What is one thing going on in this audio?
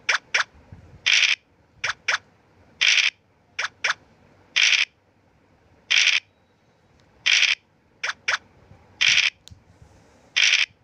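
A die rattles briefly as it rolls.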